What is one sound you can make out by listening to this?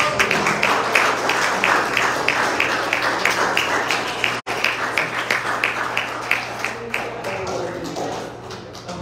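A crowd sings loudly together in an echoing hall.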